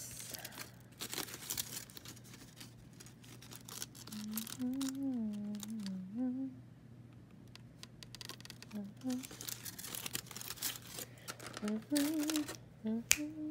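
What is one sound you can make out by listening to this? Aluminium foil crinkles as it is handled.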